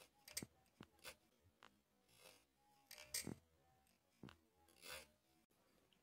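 A small knife scrapes and shaves at wood in short strokes.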